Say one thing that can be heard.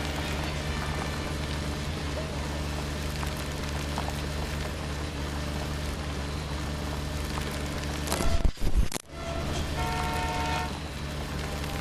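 A car engine drones steadily at low speed.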